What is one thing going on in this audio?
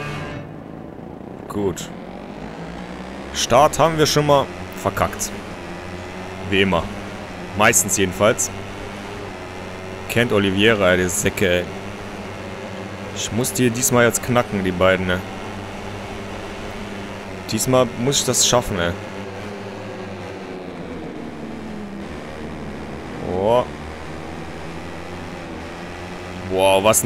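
A motorcycle engine hums steadily, with the pitch rising and falling as the bike speeds up and slows down.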